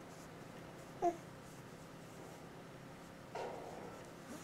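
A baby coos softly.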